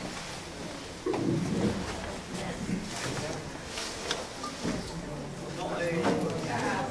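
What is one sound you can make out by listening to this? People murmur and chat in a room.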